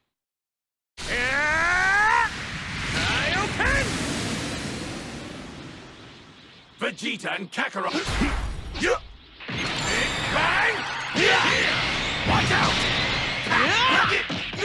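Game sound effects whoosh and burst during a fight.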